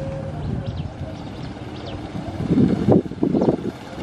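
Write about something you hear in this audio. Motorbike engines hum as they ride toward the listener.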